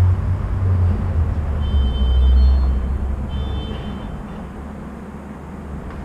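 A motor scooter idles and hums at a distance on a quiet street.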